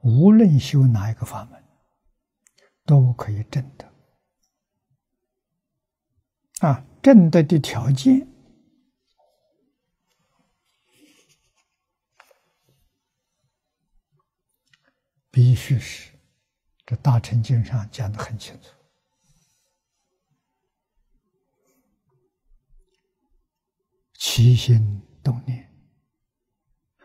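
An elderly man speaks calmly in short phrases with long pauses, close to a microphone.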